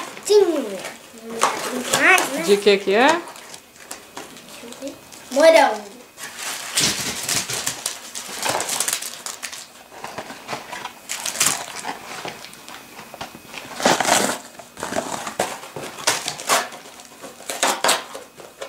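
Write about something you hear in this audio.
A cardboard box and plastic wrapper crinkle and rustle in hands.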